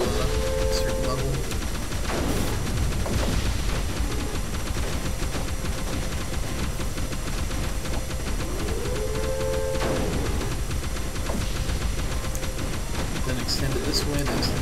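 Game weapons fire with electronic zaps.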